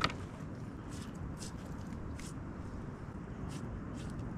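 A knife slices through raw meat.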